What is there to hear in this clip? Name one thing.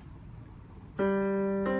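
An electronic keyboard plays a sustained note.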